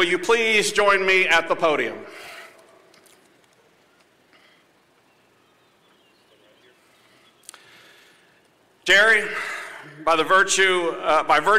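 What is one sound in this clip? A man speaks calmly through a microphone and loudspeakers outdoors.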